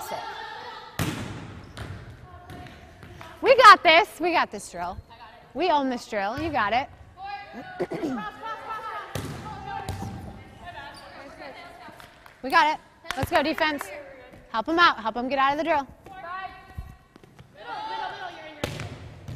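A volleyball is struck with sharp slaps in an echoing gym.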